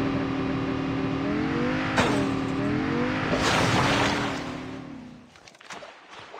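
A quad bike engine revs and hums.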